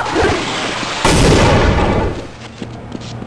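A loud explosion booms and rumbles, then fades.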